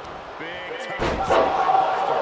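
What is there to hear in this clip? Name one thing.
A wrestler slams heavily onto the mat with a thud.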